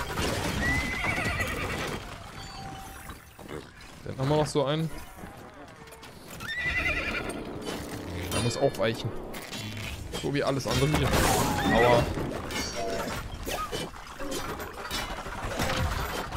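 Small creatures squeal and grunt in a scuffle.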